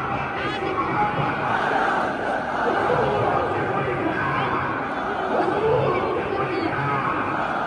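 A crowd of men talk and murmur together nearby.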